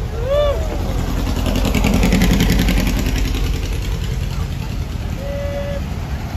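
A vintage van engine putters past close by.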